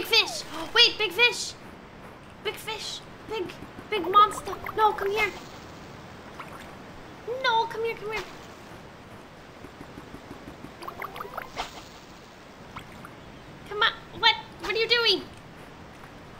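A young woman talks with animation, close to a microphone.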